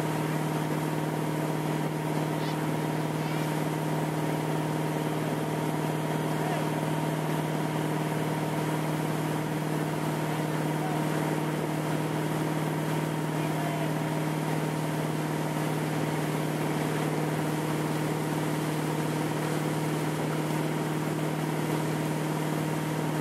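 A boat engine drones steadily at high speed.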